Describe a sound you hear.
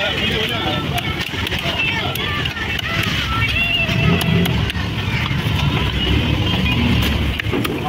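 A cleaver chops through fish onto a wooden block.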